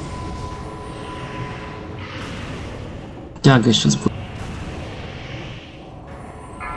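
Spells crackle and whoosh in a busy fantasy battle.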